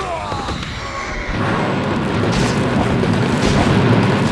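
Fantasy battle sound effects clash and crackle with magic blasts.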